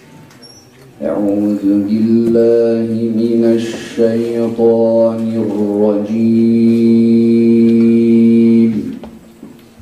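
A man chants in a sustained melodic voice through a microphone, heard over loudspeakers in an echoing hall.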